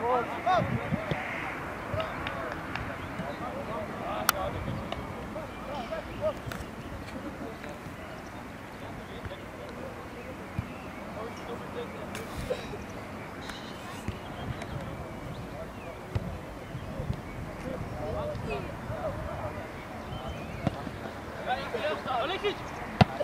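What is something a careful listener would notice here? Teenage boys shout to each other across an open outdoor field.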